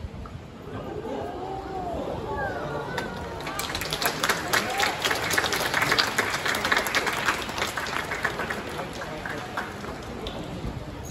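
Young players shout and cheer far off across an open field.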